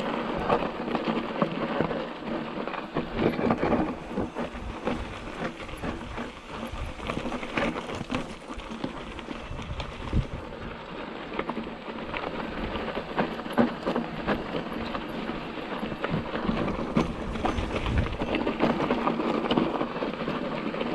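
Knobby bike tyres crunch and rattle over a rocky dirt trail.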